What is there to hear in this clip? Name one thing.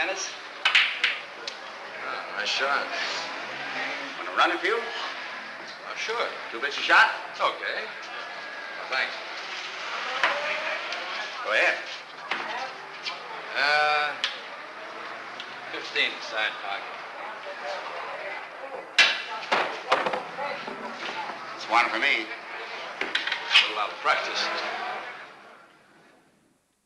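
A man talks calmly nearby.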